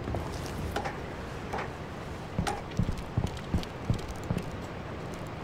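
Footsteps thud on stone.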